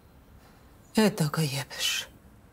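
A second woman speaks anxiously, close by.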